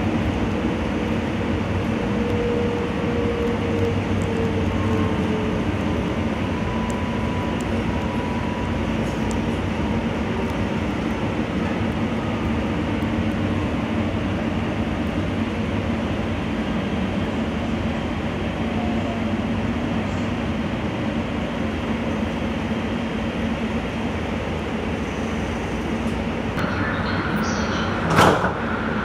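A light rail train rumbles and hums steadily along the tracks.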